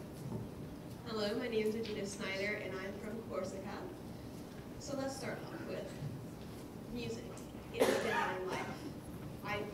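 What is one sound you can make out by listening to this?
An adult speaks calmly through a microphone in a large hall.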